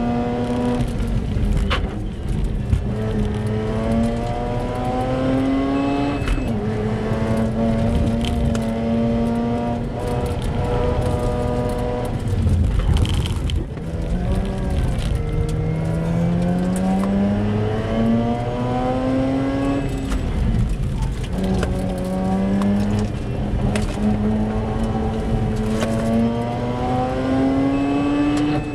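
Tyres rumble over the road surface.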